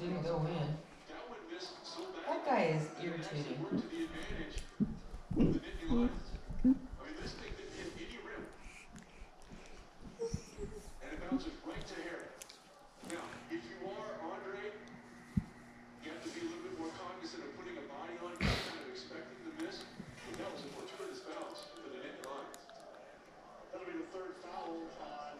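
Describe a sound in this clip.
A television plays speech and sound across the room.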